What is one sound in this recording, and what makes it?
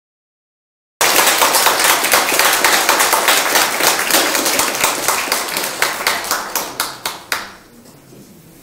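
A large audience applauds in a room.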